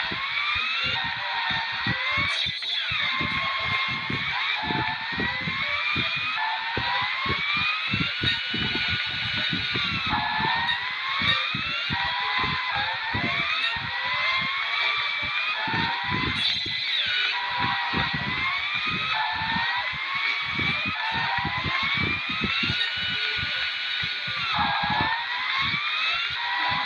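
Toy car engines whine and rev up and down as they race.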